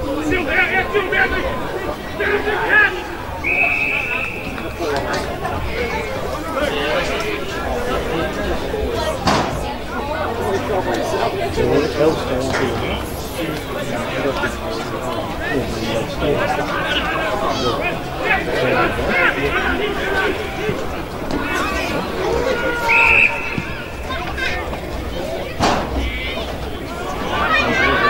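Men shout and call out to each other across an open field.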